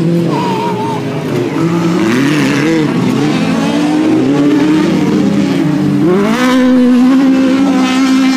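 Gravel and dirt spray from spinning tyres.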